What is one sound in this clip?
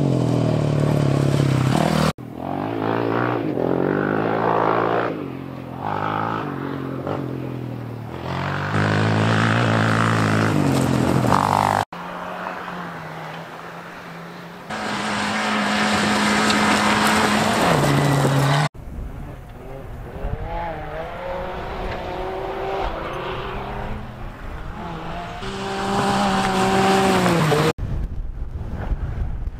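Off-road rally car engines rev hard at speed, rising and falling through the gears.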